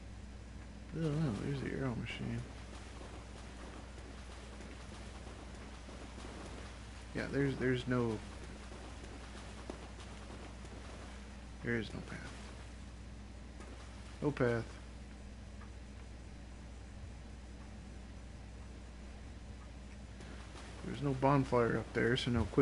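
A young man speaks in short bursts into a microphone, close by.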